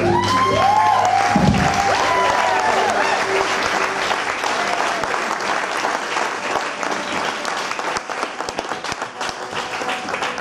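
Drums and cymbals are struck in a live band.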